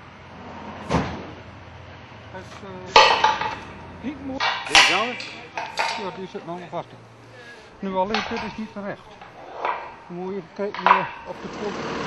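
Metal clanks and knocks as steel beams are fitted together.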